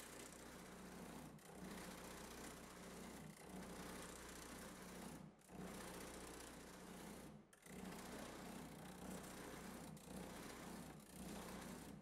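Metal scrapes as it is filed by hand.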